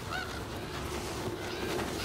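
Crows' wings flap and flutter close by.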